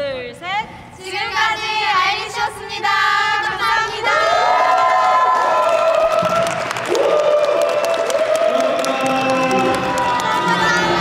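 Young women speak together in unison, loud and cheerful.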